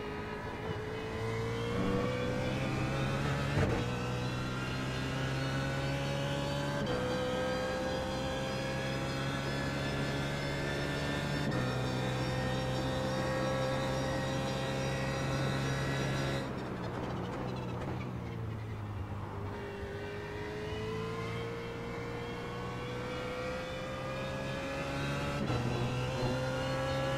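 A race car engine roars loudly, rising in pitch through the gears.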